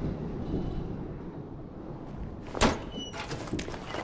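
A metal cabinet door swings open with a clank.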